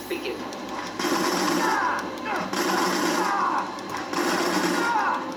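Punches and blows thud and clash from a television's speakers.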